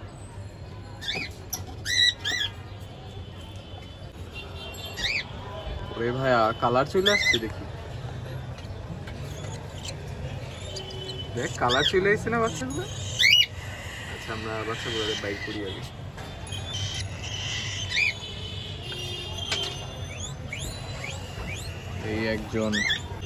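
Baby birds cheep and squeak shrilly close by.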